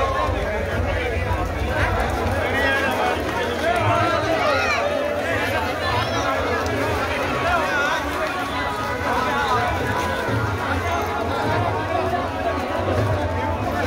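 A large crowd of men talks and shouts loudly all around, outdoors.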